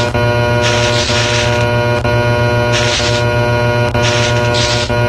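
Steady electronic game music plays throughout.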